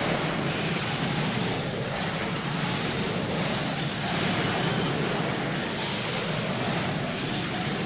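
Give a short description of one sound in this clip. Game battle sounds of spells and blows ring out steadily.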